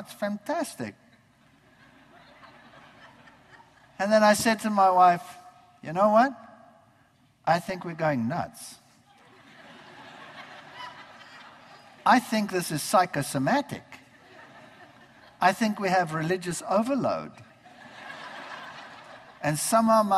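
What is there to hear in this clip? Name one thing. An elderly man speaks through a microphone in a large hall, in short bursts with pauses.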